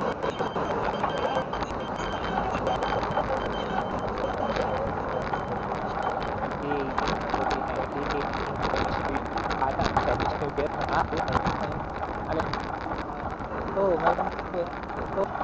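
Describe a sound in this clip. A bicycle rattles and clicks as it rolls over rough pavement.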